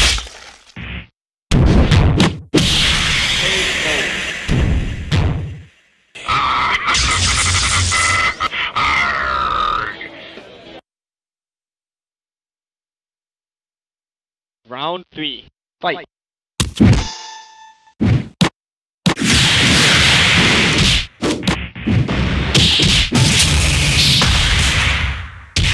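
Video game fighters land heavy punches and kicks with loud thuds.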